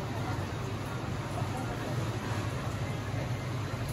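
Cooking utensils clink and clatter on a stove.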